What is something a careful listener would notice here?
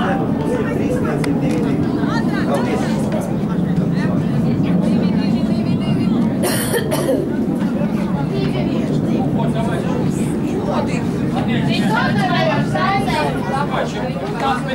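Spectators chatter and call out nearby, outdoors.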